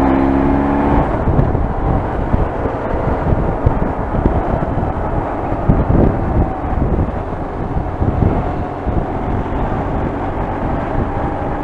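Wind rushes and buffets loudly.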